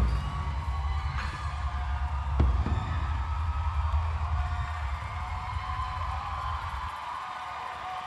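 A large crowd cheers and sings loudly in an echoing hall.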